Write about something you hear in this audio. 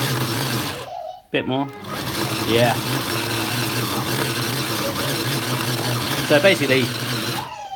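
An electric food chopper whirs steadily as it blends.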